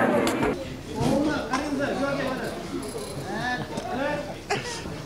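An elderly woman speaks cheerfully close to a microphone.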